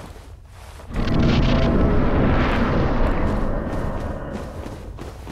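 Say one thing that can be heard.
A loud rushing whoosh swells and then fades.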